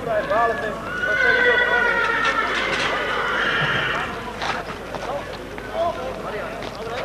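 A crowd of men talk and shout outdoors.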